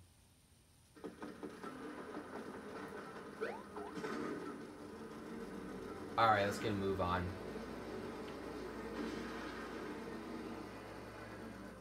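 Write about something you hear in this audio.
Video game music plays from a television.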